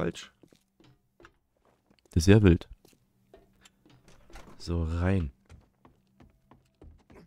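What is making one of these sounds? Footsteps tap lightly on hard ground and wooden floors.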